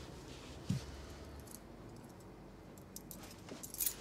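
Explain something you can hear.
Keys jingle in a hand.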